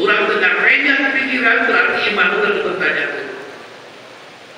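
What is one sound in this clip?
A man speaks through a microphone, echoing in a large hall.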